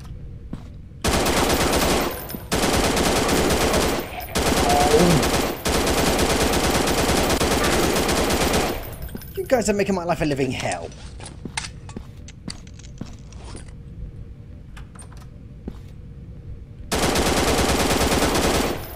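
An automatic rifle fires rapid, loud bursts.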